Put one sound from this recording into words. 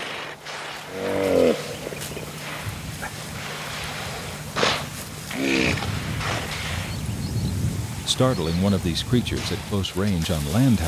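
Hippos grunt and bellow loudly from the water.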